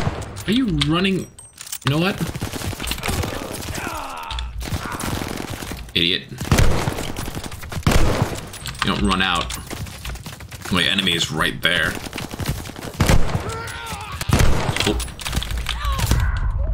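Rifle shots fire in loud bursts.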